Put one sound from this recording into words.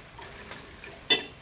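A metal ladle clinks against a cooking pot.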